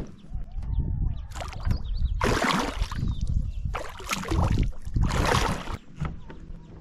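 Water splashes and churns close by as a large animal surfaces.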